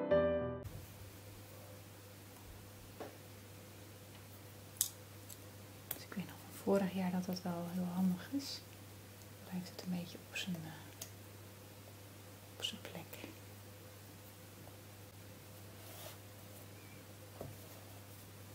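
A peeler scrapes and clicks against a hard root vegetable.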